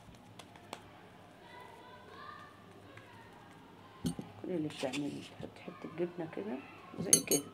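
Hands softly pat and press soft dough.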